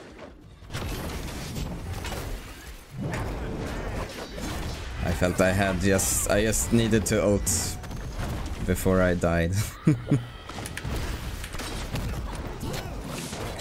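Heavy blows land with loud thuds and whooshes.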